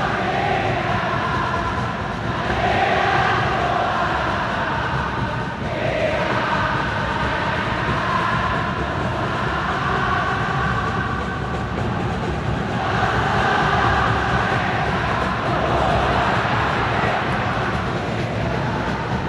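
A huge crowd chants and sings in unison throughout a large open stadium.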